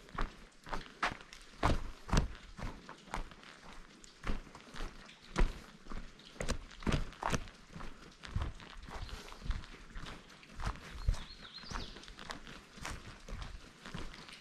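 Footsteps crunch on dry leaves and earth.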